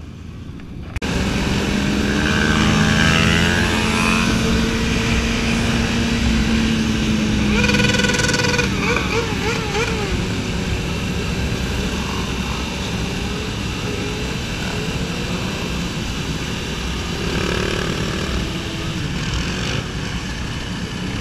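Wind rushes loudly past at speed.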